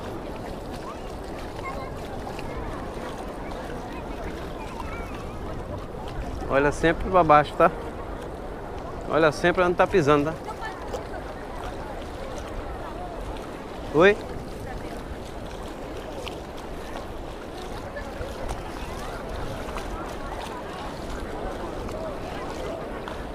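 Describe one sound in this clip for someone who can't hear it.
A crowd of people murmurs and chatters in the distance outdoors.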